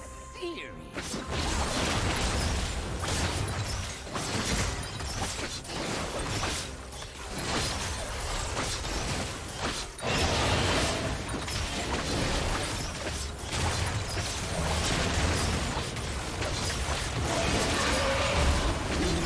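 Video game combat effects burst and clash rapidly.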